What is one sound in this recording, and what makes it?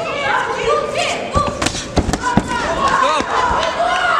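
Boxing gloves thud against a fighter's body and gloves.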